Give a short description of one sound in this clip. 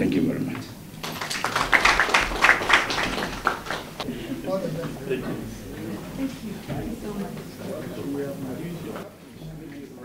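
A crowd of people chatter in a room.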